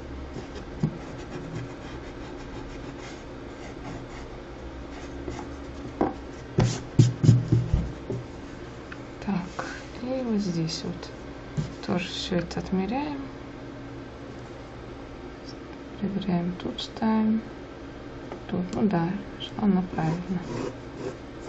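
A pencil scratches lightly across paper.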